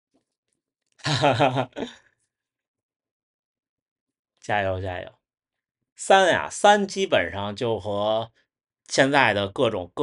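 A young man speaks calmly and close by, with pauses.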